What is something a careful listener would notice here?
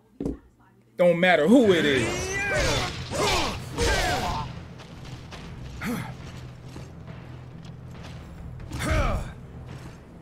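Swords clash and strike in a loud fight.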